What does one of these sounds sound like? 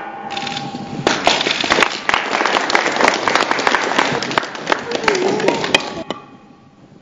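A crowd claps and applauds loudly.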